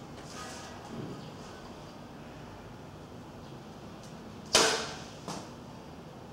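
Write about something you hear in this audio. A bowstring twangs sharply as an arrow is released.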